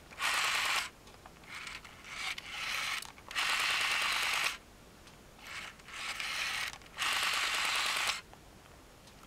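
A rotary phone dial whirs as it spins back after each number.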